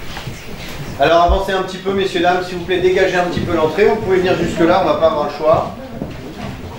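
A man speaks loudly and with animation in an echoing room.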